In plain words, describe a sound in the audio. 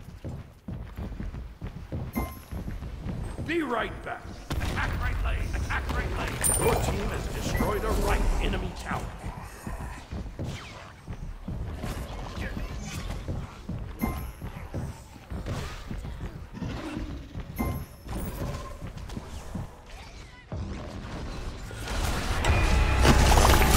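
Magic blasts zap and crackle in quick bursts.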